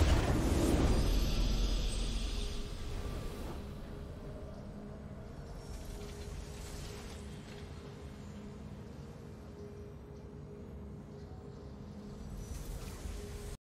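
A victory fanfare plays from a game.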